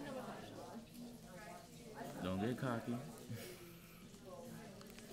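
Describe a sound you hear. Small scissors snip softly through soft tissue.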